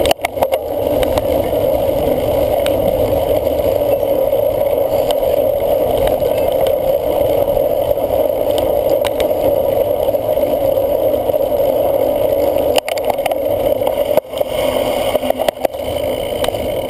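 Wind rushes loudly past a microphone on a moving cyclocross bike.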